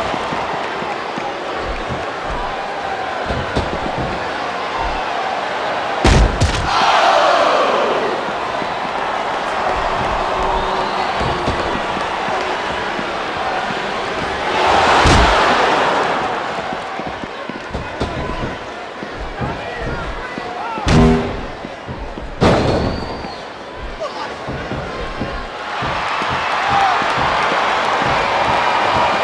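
A large crowd cheers and roars throughout, swelling loudly now and then.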